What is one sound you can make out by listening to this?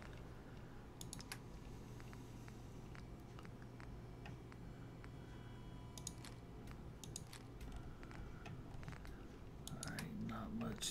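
Short electronic menu clicks tick quickly, one after another.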